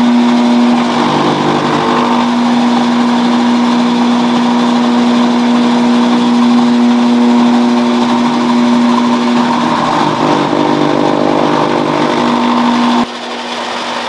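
A chopper shreds grass with a rough whirring crunch.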